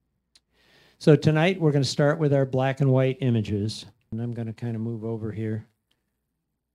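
A man speaks calmly through a microphone, as if giving a talk.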